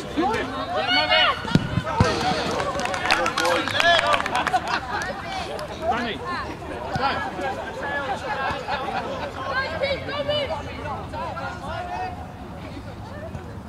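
Men and women talk nearby among a small crowd.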